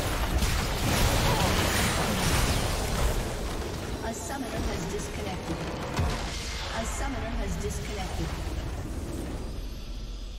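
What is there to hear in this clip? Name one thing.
Game spell effects crackle and whoosh in a busy fight.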